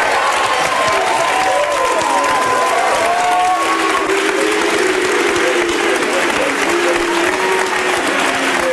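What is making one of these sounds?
A studio audience claps loudly.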